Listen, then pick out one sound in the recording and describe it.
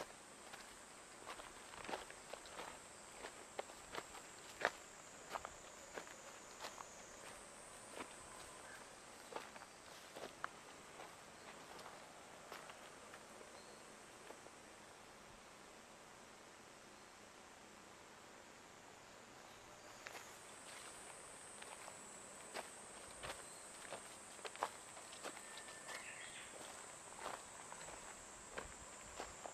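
Footsteps crunch on dry leaves and gravel.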